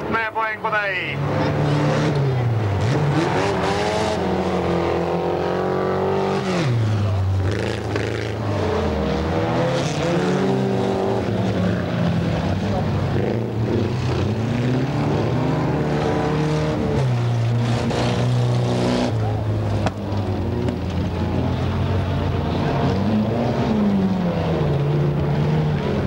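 Race car engines roar and rev up and down.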